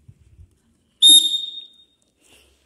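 A whistle blows a short, shrill blast close by.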